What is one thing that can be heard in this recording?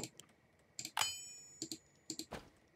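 A short game menu chime rings.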